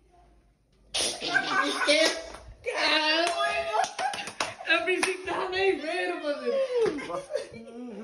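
A young man and a young woman laugh loudly close by.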